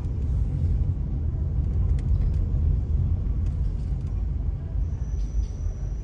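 A car engine hums low and steady from inside the car as it drives slowly.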